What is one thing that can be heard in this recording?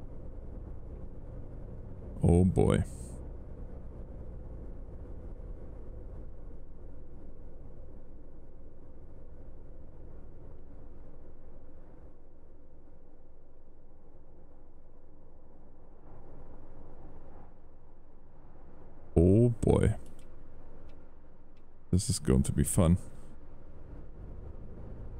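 A bus engine rumbles low and steady as the bus rolls slowly.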